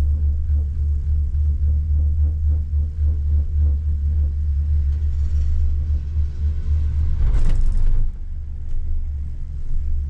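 A gondola cabin hums and rumbles steadily as it rides the cable.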